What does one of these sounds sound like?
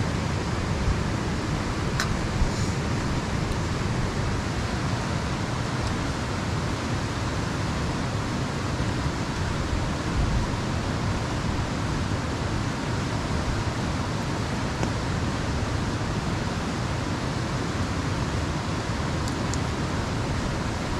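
A river rushes loudly nearby.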